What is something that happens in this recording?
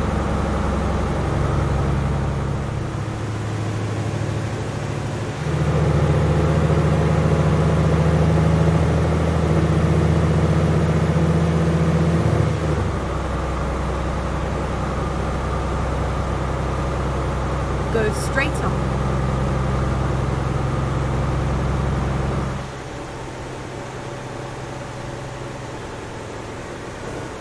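A truck engine hums steadily, its pitch shifting as gears change.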